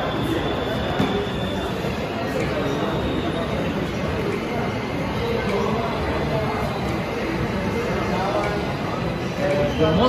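Chess pieces click on a board.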